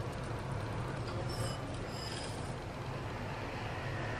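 Dry crumbs pour softly into a metal pot.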